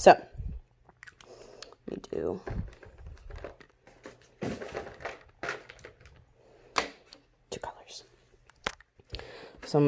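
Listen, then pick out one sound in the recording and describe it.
Paper rustles and a pen clicks against a table.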